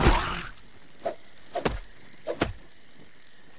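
A spear stabs into a giant insect with wet thuds.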